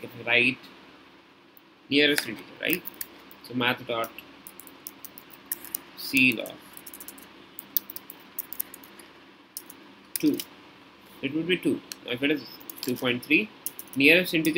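Keys click quickly on a computer keyboard.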